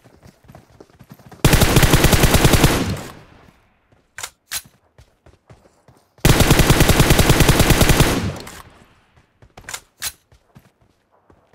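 Footsteps run over the ground.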